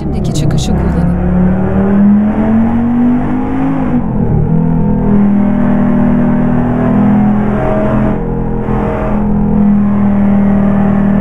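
A car engine drones steadily, its pitch dropping and rising as it shifts gear.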